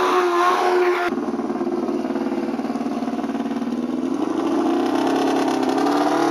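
A race car engine idles loudly with a rough, pulsing rumble close by.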